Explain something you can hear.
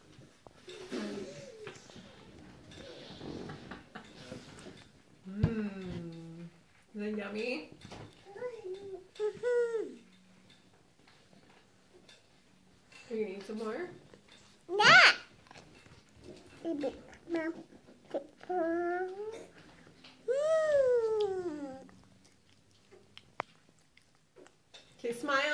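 A little girl talks and squeals close by.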